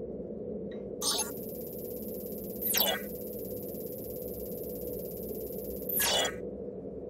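A steady high electronic tone plays, then stops.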